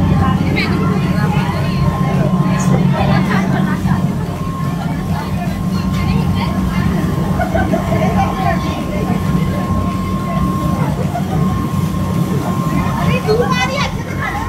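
Water splashes and rushes past a boat's hull.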